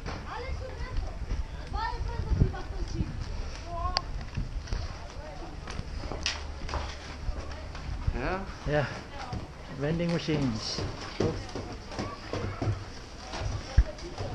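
Ski boots thud and crunch on snow and boards.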